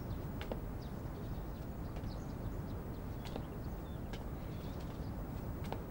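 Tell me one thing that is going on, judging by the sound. Footsteps tread softly across a floor.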